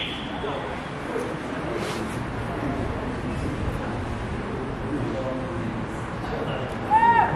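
Young men shout to each other across an open field, far off.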